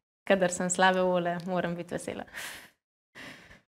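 A young woman talks cheerfully close to a microphone.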